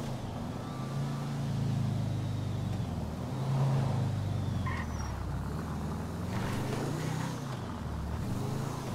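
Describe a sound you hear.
A car engine hums and revs as the car drives along.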